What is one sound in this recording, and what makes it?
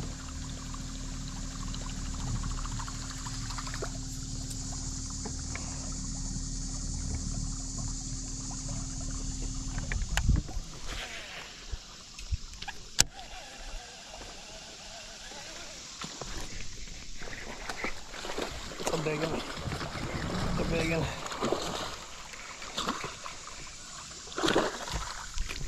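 A fishing reel clicks as the line is wound in.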